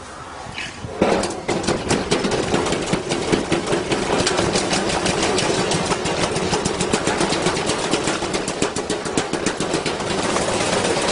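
Something heavy bangs rapidly inside a spinning washing machine drum.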